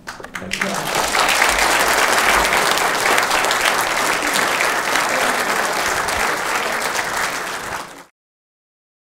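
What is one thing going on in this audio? A crowd applauds loudly, then the clapping stops abruptly.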